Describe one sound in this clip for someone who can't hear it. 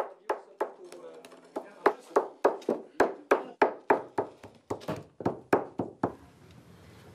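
A wooden mallet knocks sharply on a chisel in quick repeated blows.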